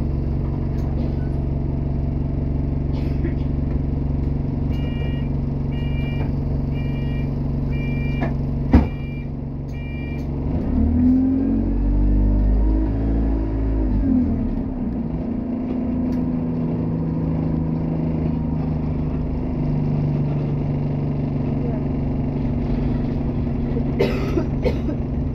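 A bus engine drones steadily from inside the bus.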